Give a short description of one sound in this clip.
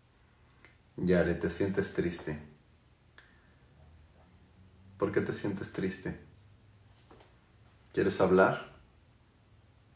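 A young man speaks calmly and close up in short bursts.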